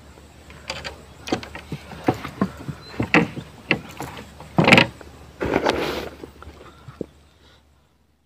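Objects knock and thud against the wooden floor of a small boat.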